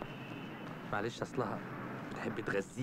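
A young man speaks softly.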